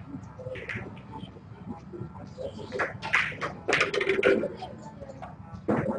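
Snooker balls knock together with hard clicks.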